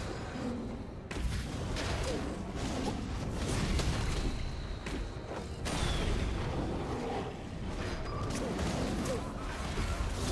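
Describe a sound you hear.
Fantasy game spell effects crackle and whoosh during a fight.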